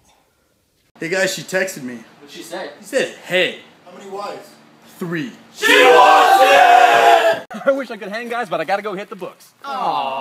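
Young men talk and shout excitedly.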